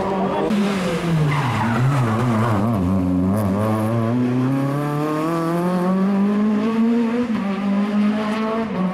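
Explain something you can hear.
A second rally car engine approaches, revving loudly and climbing in pitch.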